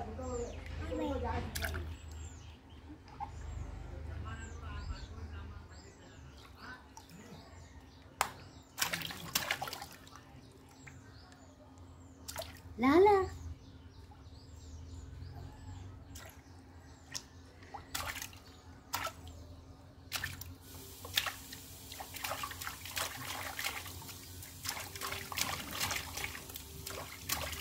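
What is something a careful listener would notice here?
A small child splashes water in a tub.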